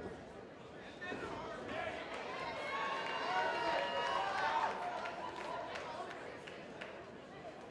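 An indoor arena crowd cheers and shouts.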